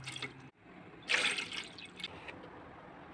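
Water pours and splashes into a metal pot.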